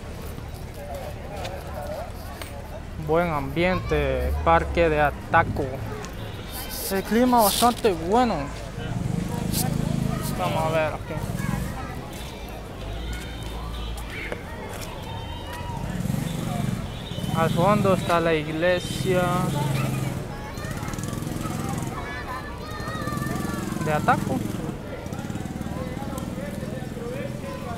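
Men and women talk and call out nearby outdoors.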